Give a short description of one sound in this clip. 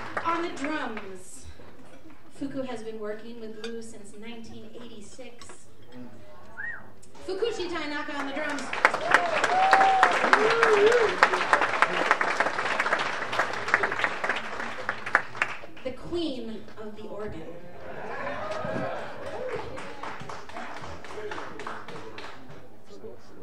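A man speaks through a microphone to an audience.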